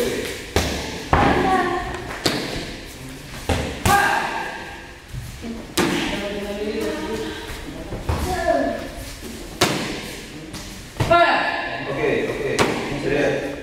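Kicks smack sharply against a padded target, again and again.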